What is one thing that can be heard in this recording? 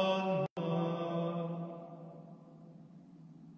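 A man chants a long sustained note that fades away in a large echoing hall.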